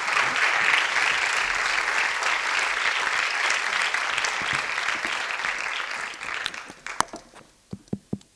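An audience applauds in an echoing hall, then the applause dies away.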